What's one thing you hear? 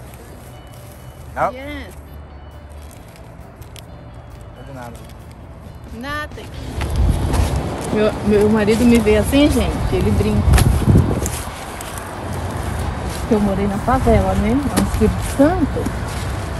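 Paper and plastic rustle as things are handled.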